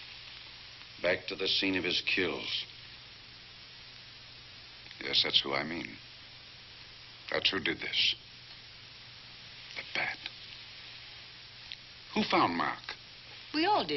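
An elderly man speaks firmly, in short bursts with pauses.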